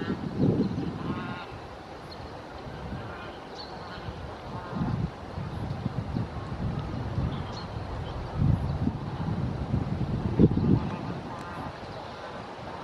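Geese honk now and then.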